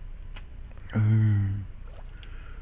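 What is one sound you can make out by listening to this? Water splashes as something plunges in.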